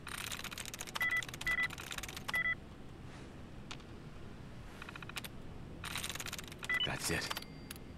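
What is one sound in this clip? A computer terminal beeps.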